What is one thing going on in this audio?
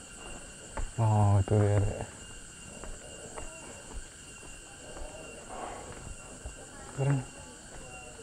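A man speaks loudly close by in short bursts.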